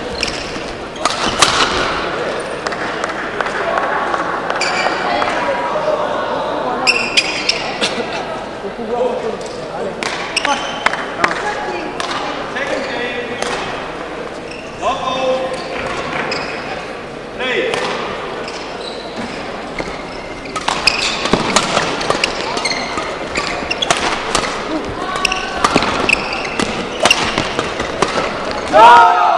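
Shoes squeak on a hard court floor.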